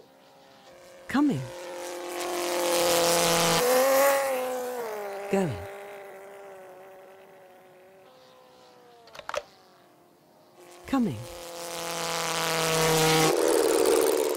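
A small model plane engine whines loudly as the plane races past, its pitch dropping.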